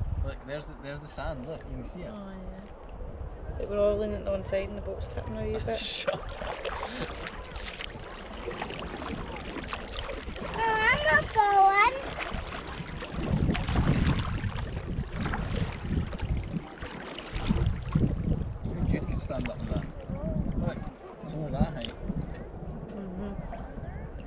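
Wind blows across the open water.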